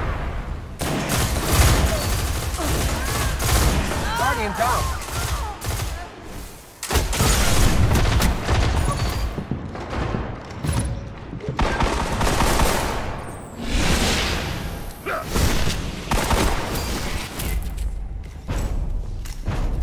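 Video game gunshots fire in quick bursts.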